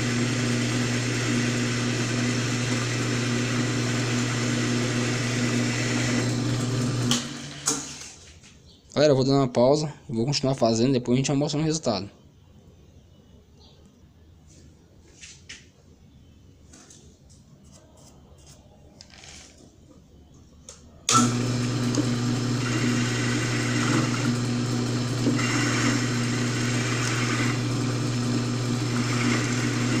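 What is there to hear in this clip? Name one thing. A lathe motor hums steadily as the chuck spins.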